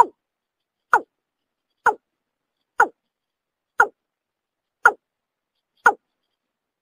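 A bird gives short, sharp calls about once a second.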